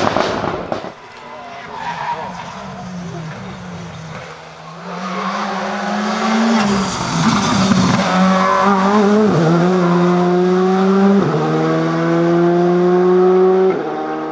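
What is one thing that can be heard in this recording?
A second rally car engine roars past loudly.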